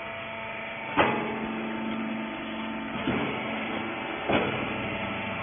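Metal parts clatter and knock.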